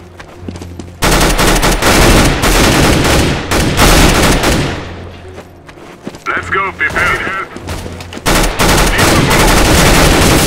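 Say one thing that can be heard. Rapid automatic gunfire rattles in loud bursts.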